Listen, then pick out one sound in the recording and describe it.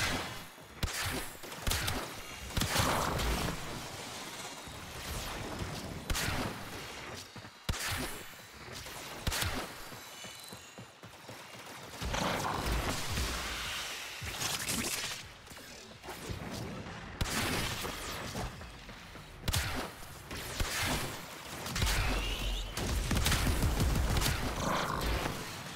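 Loud blasts and energy bolts crackle.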